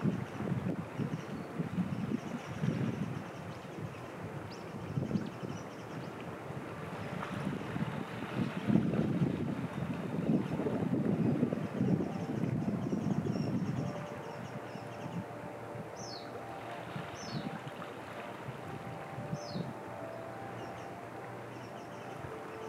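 Small waves lap gently against the rocky shore.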